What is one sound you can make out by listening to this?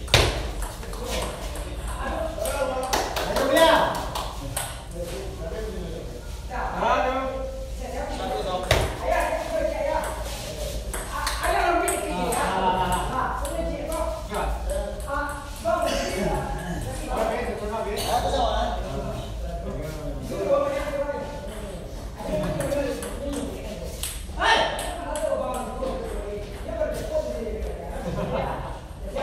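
Men talk and call out nearby in a room with a slight echo.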